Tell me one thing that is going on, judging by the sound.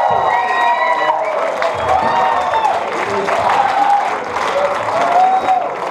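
A live band plays loud music through loudspeakers in an echoing hall.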